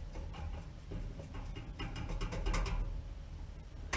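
Ash and cinders scrape and rattle as they are shovelled.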